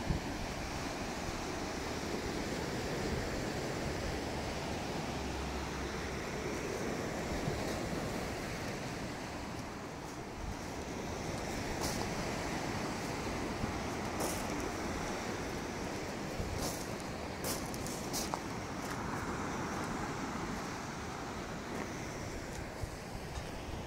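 Waves wash steadily onto a shingle beach.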